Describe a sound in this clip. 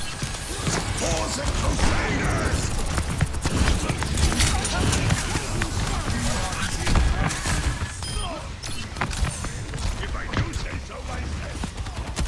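Gunfire and energy blasts go off in rapid bursts.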